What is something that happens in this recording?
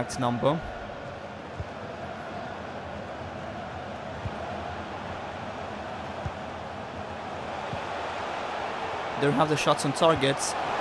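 A stadium crowd roars steadily all around.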